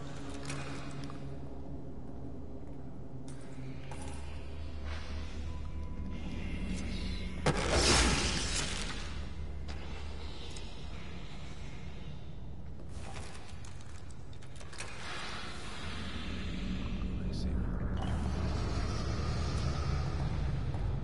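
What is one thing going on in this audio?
A low droning hum fills an echoing underground space.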